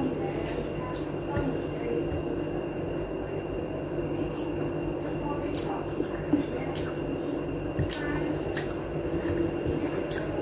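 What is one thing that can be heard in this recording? A man sings into a microphone, heard through a phone's small speaker.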